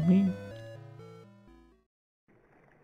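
A short video game melody of electronic tones plays and fades.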